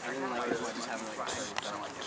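A group of young people chatter and laugh.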